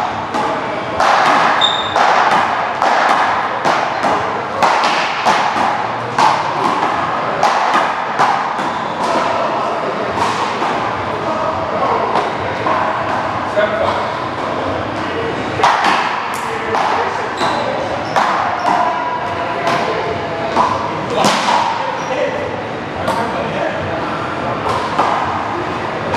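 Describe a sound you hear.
Paddles strike a ball with sharp cracks.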